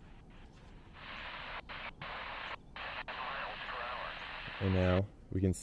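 A handheld radio hisses with static from its small speaker.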